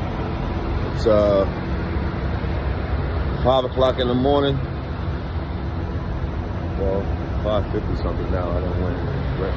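A man speaks close to a phone microphone in short bursts.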